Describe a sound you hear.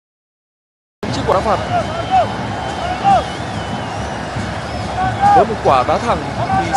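A large stadium crowd roars and cheers in the distance.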